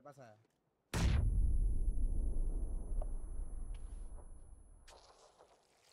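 A grenade explodes nearby with a deep boom that rumbles away.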